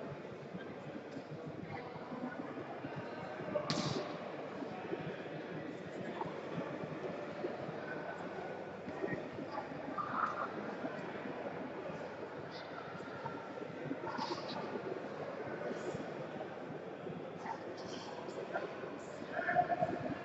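Many people talk and call out in a large echoing hall.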